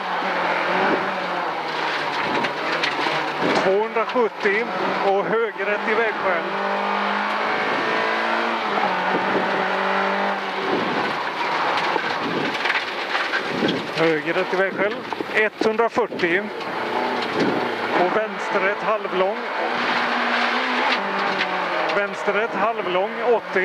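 A man calls out directions quickly through a helmet intercom.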